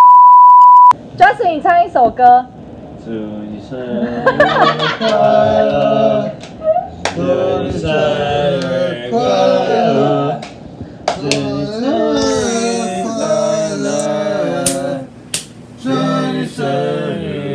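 Several young men talk and laugh together close by.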